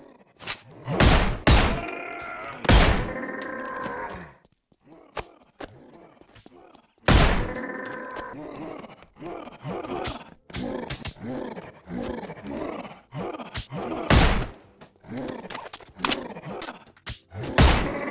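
A pistol fires loud gunshots that ring out with an echo.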